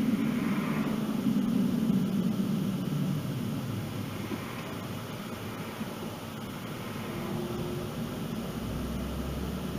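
A car's engine hums and its tyres roll steadily on the road.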